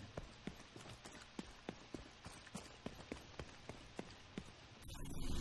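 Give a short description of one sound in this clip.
Quick footsteps run on hard ground.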